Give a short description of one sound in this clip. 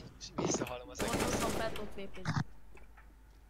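A rifle fires a short burst.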